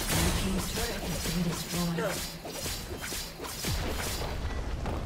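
Rapid clashing hits and spell effects ring out in a video game.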